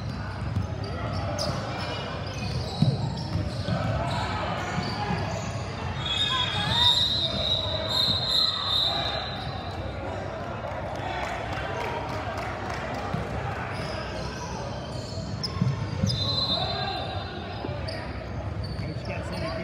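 Basketball shoes squeak on a wooden court in a large echoing gym.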